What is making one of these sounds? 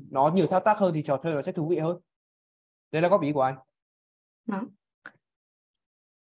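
A woman speaks calmly through a microphone, in short bursts.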